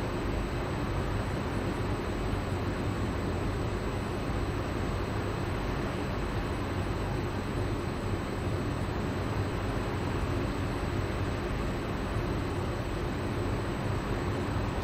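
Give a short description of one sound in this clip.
Rain patters steadily on the ground.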